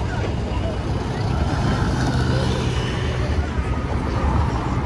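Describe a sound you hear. A bus drives by close.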